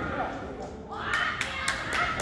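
A young woman cries out.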